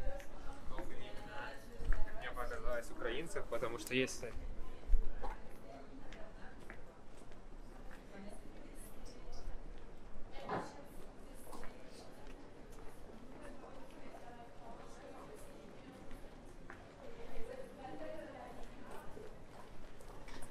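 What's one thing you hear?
Several adults talk nearby, outdoors.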